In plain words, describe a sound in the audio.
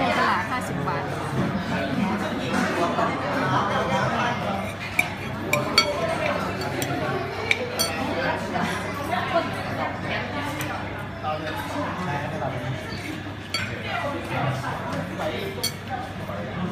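Cutlery clinks and scrapes against a plate.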